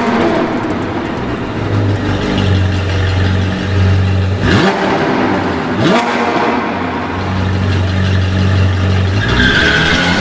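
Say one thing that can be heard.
A sports car engine rumbles and revs.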